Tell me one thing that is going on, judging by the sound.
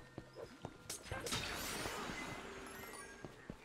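A magic blast bursts with a loud crackling whoosh.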